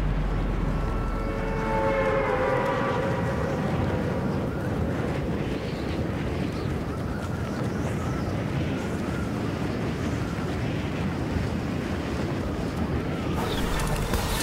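Wind rushes steadily during a glide through the air.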